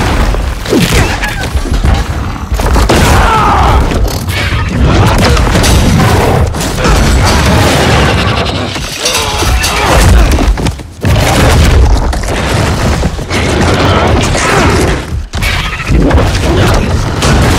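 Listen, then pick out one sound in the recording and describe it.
Heavy blows land with crashing impacts.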